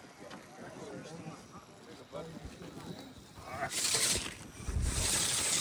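Rubber tyres scrape and grip on rock.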